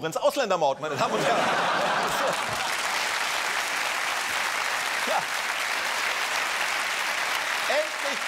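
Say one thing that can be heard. A studio audience claps and cheers loudly.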